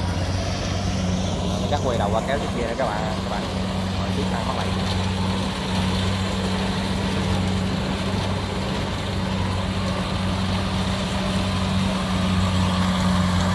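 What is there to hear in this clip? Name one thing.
A diesel combine harvester engine drones steadily.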